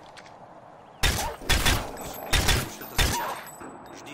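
A rifle fires several loud, sharp shots.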